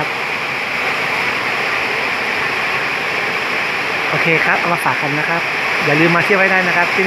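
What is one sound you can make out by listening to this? Steady rain falls and patters outdoors.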